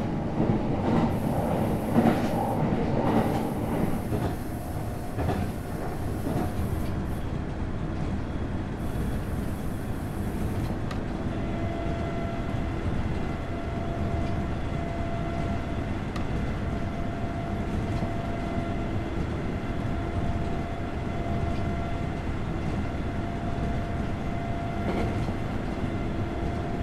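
Wheels click rhythmically over rail joints.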